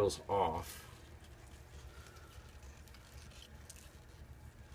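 Dry papery onion skin crackles softly as hands peel it.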